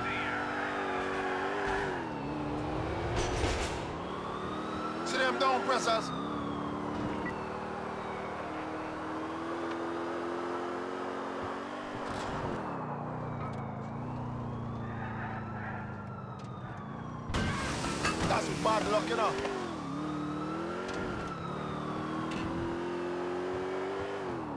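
A car engine revs and hums steadily as it drives.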